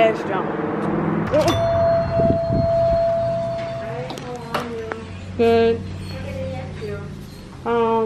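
A young woman speaks close by in short bursts.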